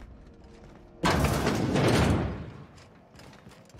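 A heavy metal door slides open with a loud rush.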